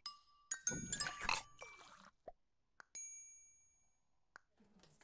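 Bright electronic chimes ring out in short bursts.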